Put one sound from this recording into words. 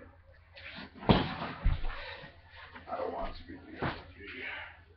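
A pillow whacks against a young man.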